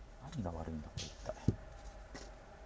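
A phone is set down on a soft cloth with a dull knock.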